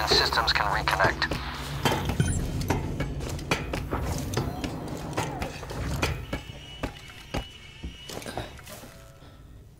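Hands and feet knock on metal ladder rungs while climbing.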